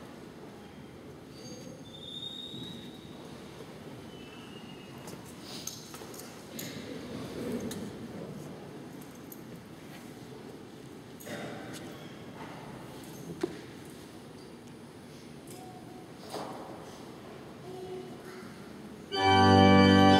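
Men murmur softly in a large echoing hall.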